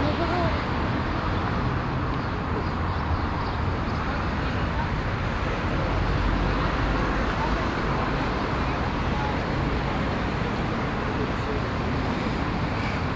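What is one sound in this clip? City traffic rumbles outdoors.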